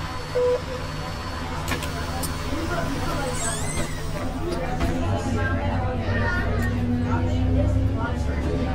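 A bus engine hums with a low, steady drone.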